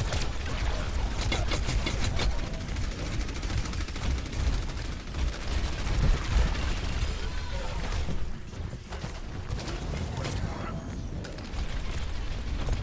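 Rapid gunfire crackles and blasts in quick bursts.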